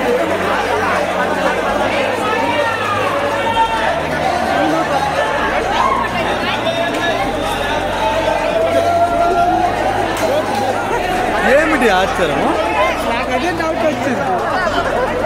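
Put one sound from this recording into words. A large crowd cheers and shouts excitedly in a big echoing hall.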